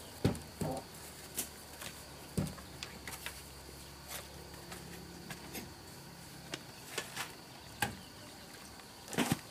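Wooden pieces clatter and knock as they are handled.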